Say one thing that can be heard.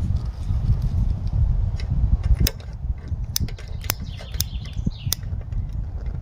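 A lighter clicks several times.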